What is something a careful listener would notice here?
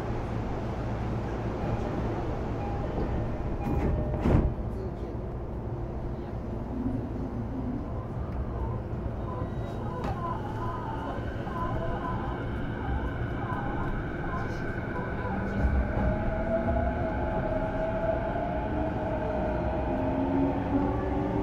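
An electric train rumbles low and steady, its motor whining higher as it speeds up.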